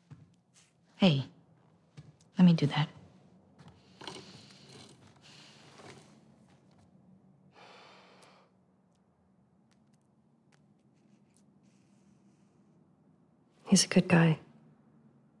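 A young woman speaks softly and calmly, close by.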